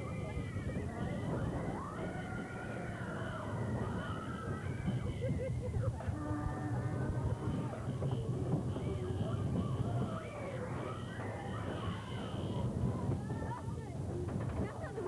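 Young riders scream and shout with excitement nearby.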